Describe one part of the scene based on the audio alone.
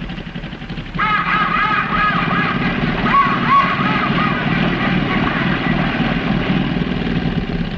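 Geese honk nearby.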